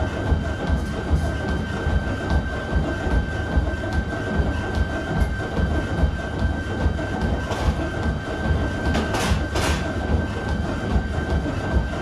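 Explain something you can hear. A treadmill belt hums and rumbles steadily.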